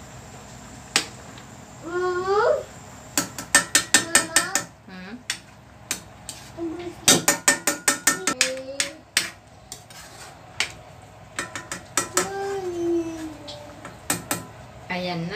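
A metal ladle clinks and scrapes against a pan while stirring soup.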